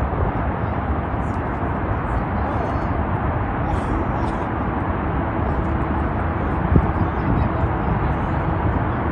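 Steady traffic roars past on a highway in the distance.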